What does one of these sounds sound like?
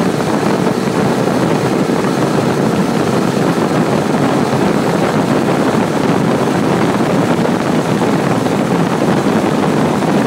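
Wind buffets a microphone loudly and steadily.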